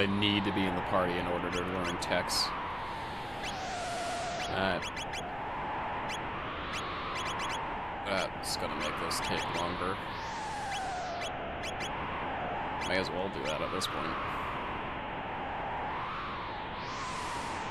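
Game music plays steadily with a gliding melody.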